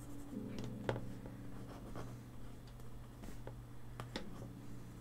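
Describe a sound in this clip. A marker squeaks and taps on paper.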